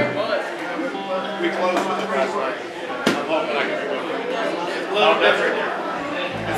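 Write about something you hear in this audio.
A drum kit plays with a sharp cymbal crash.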